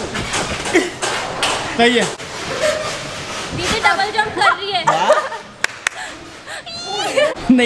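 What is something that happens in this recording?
Young women laugh and squeal with excitement nearby.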